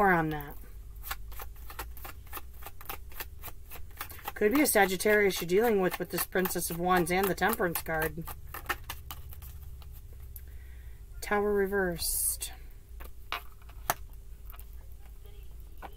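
Cards shuffle and riffle softly in a woman's hands.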